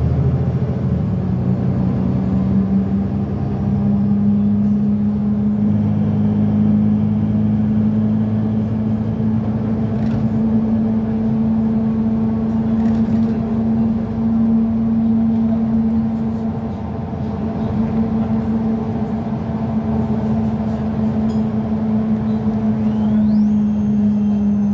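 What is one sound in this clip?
A vehicle's engine hums steadily from inside as it drives along a road.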